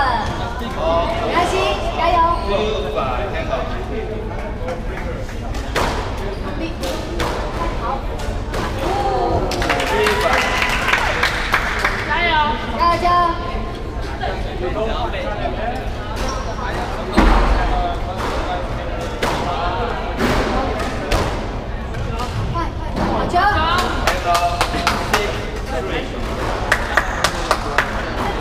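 A squash ball smacks sharply against a wall and rackets.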